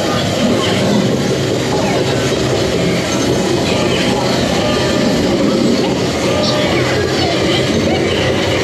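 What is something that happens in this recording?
Crashing sound effects boom through loudspeakers.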